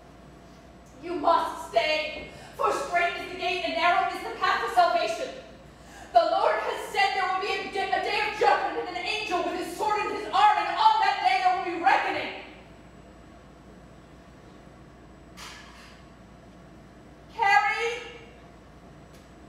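A woman speaks with animation, heard from the audience.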